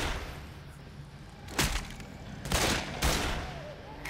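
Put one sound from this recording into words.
A fire extinguisher bursts and hisses out spray.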